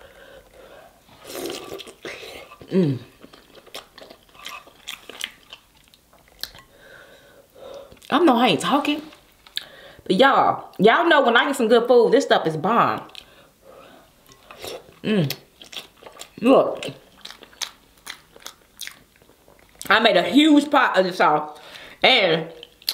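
A young woman eats noisily close to a microphone, with wet smacking and slurping.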